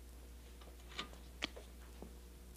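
A switch clicks on a device.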